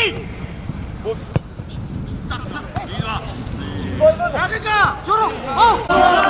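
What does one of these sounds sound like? A football thuds as it is kicked on grass.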